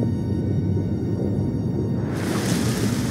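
Water rumbles in a low, muffled way underwater.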